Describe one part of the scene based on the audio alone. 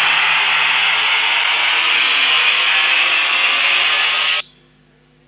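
Rocks tumble and clatter down onto a metal grate with a loud rushing roar.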